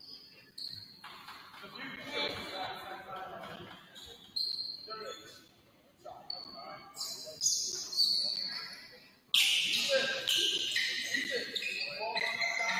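A crowd of spectators talks and calls out in an echoing gym.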